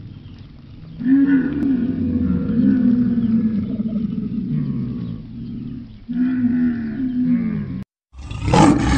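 A camel groans and bellows nearby.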